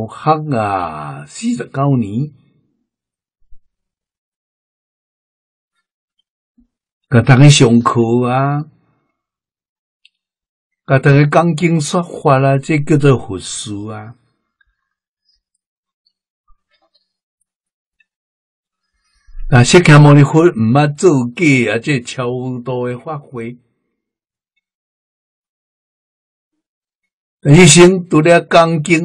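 An elderly man speaks calmly into a close microphone, in bursts with long pauses.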